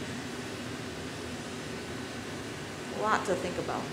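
A gas torch flame hisses and roars steadily.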